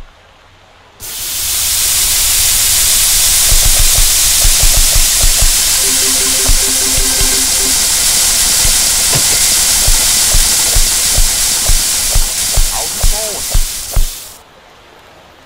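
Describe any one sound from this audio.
Sausages and patties sizzle loudly on a hot grill.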